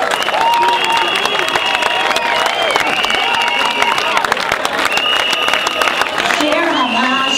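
A large crowd chants and cheers outdoors.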